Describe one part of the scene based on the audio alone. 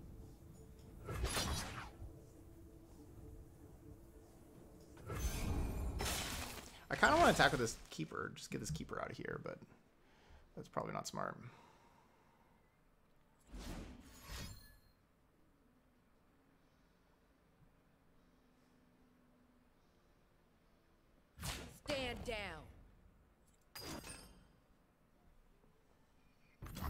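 Game sound effects whoosh and chime.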